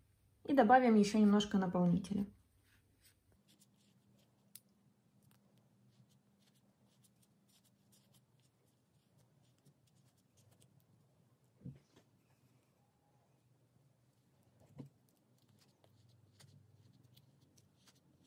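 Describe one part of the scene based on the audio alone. Soft stuffing rustles faintly as it is pushed into a knitted ball.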